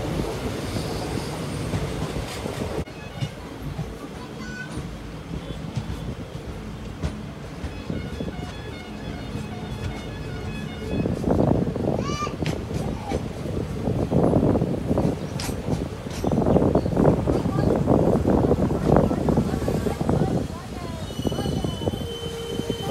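Wind rushes past an open train window.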